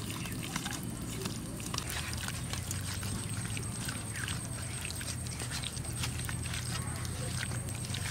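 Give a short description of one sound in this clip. Hands squelch and squish as they mix wet food in a metal bowl.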